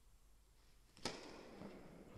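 A racket hits a tennis ball with a sharp pop that echoes in a large hall.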